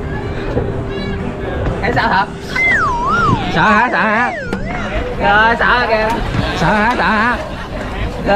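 A teenage boy talks excitedly close by.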